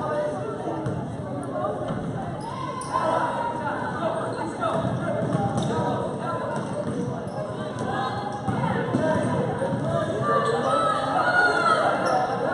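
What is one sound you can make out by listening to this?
Basketball shoes squeak on the hardwood court.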